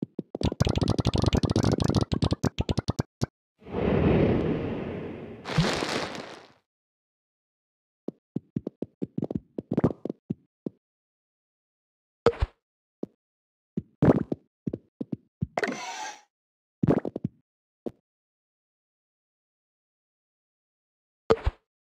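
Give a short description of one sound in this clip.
Small balls rattle and click rapidly as they tumble down.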